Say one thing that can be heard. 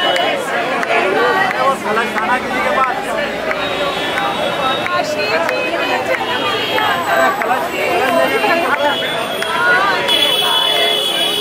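Women clap their hands.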